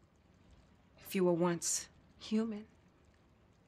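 A young woman speaks with feeling.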